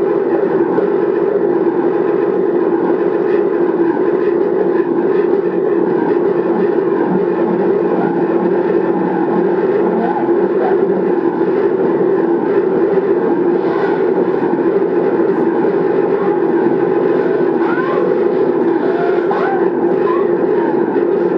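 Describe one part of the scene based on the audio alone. Electronic noise music from a laptop plays over loudspeakers.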